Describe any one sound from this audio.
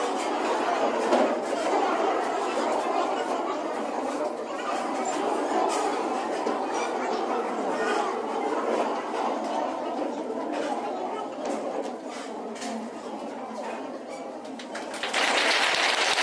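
A crowd of men and women murmur and chatter nearby.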